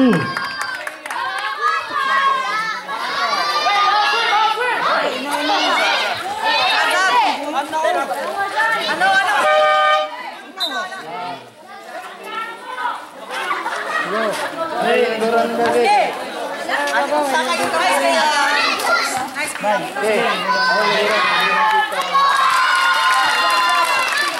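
A crowd of spectators chatters and shouts loudly outdoors.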